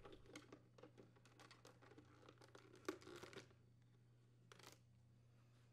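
Small plastic parts click and rustle softly as they are handled.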